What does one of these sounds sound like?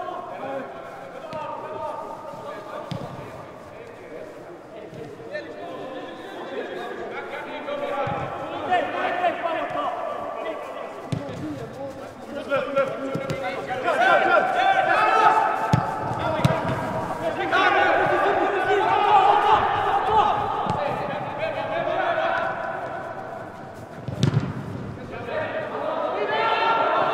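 A football is kicked with dull thuds in a large echoing hall.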